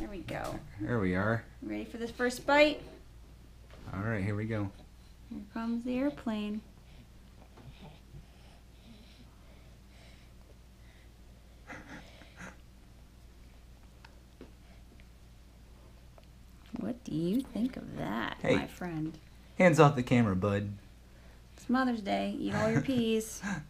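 A young woman talks to a baby in a sing-song voice close by.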